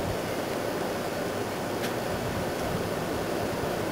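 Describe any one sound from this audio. Soil thuds softly as it is tipped from a pot.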